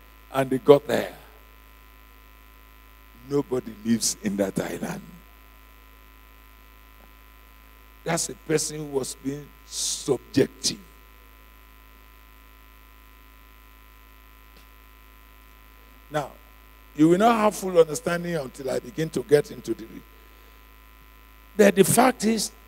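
A man preaches with animation into a microphone, in bursts with pauses between.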